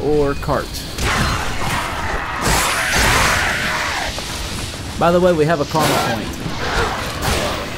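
A blade slashes through flesh with wet thuds.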